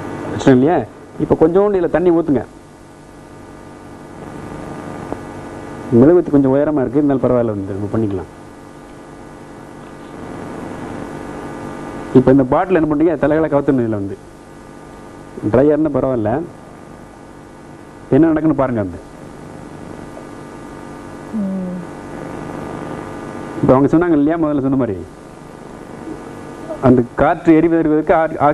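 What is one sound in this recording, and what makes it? A man speaks calmly and clearly into a microphone, explaining in short phrases.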